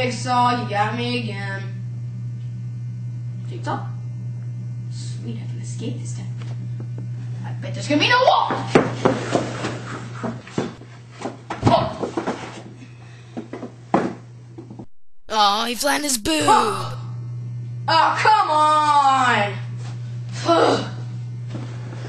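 A teenage boy talks loudly nearby.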